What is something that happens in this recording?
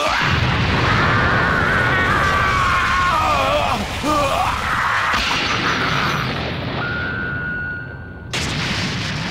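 A huge energy blast roars and crackles loudly.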